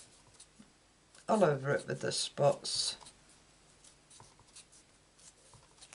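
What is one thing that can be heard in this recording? A small rubber stamp taps softly on paper.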